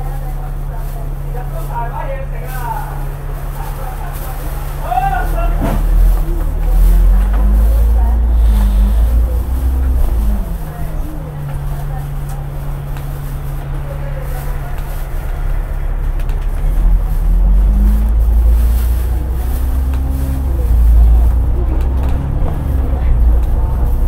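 A bus engine rumbles close by, rising in pitch as the bus speeds up and falling as it slows.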